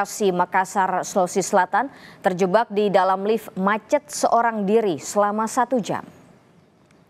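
A young woman reads out news calmly and clearly into a microphone.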